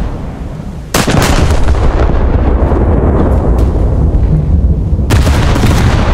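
Heavy naval guns fire with loud booming blasts.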